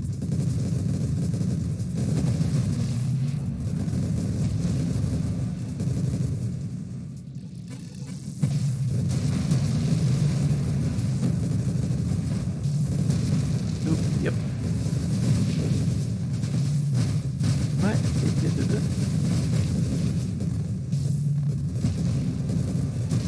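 Electronic explosions burst again and again.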